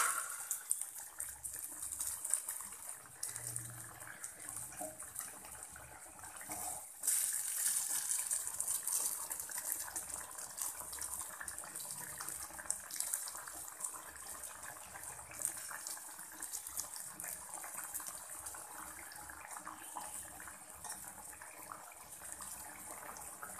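A pot of food bubbles and crackles steadily.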